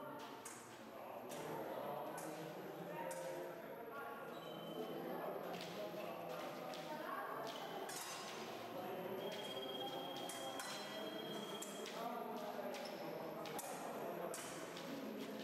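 Shoes squeak and thump on a hard floor.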